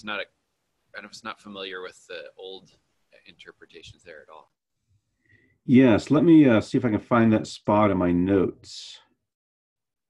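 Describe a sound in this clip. A man speaks calmly through a microphone on an online call.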